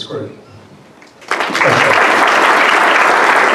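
A man speaks into a microphone over a loudspeaker in a large room.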